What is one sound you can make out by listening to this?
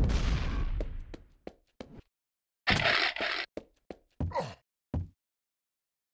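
Quick footsteps thud on a hard floor.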